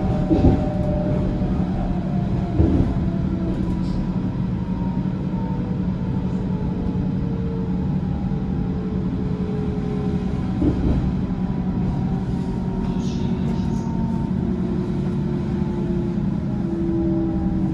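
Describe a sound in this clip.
Train wheels whine with gliding tones on the rails.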